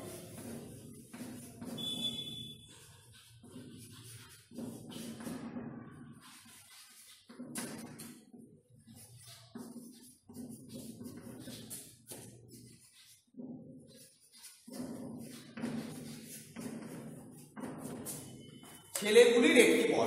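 A man speaks slowly in pauses, close by.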